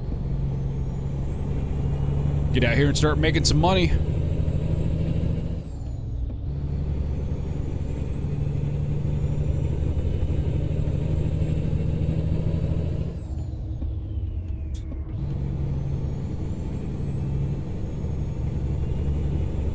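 A truck engine drones steadily, rising and falling as it shifts gears.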